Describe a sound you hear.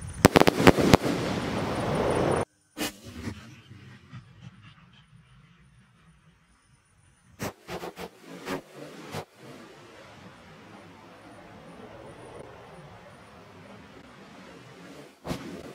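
Fireworks burst and crackle in the sky.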